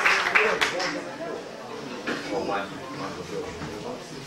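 A man speaks into a microphone to an audience.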